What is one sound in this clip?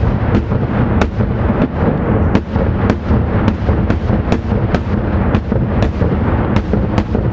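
Fireworks burst overhead in quick, repeated sharp bangs.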